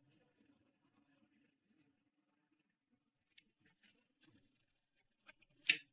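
Kitchen items clatter softly as a woman handles them.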